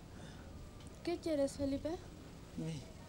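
A woman speaks softly up close.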